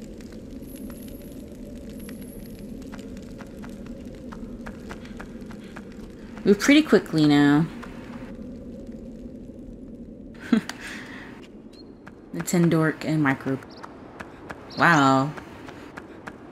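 Footsteps tap lightly on stone.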